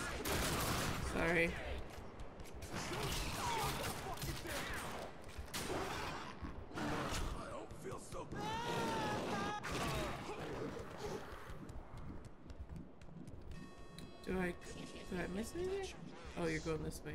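Monstrous creatures snarl and growl close by.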